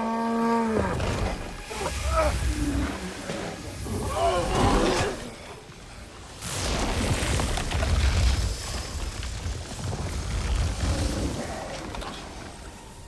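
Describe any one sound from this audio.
A deep rumbling blast roars.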